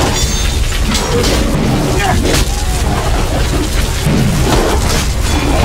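A magical blast whooshes and crackles.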